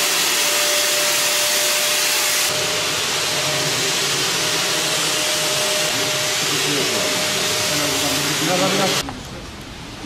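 A sprayer hisses steadily.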